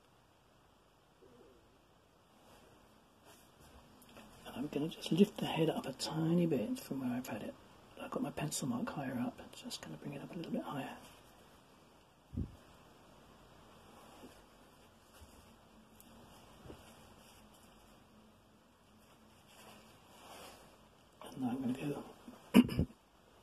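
A paintbrush dabs and strokes softly on paper.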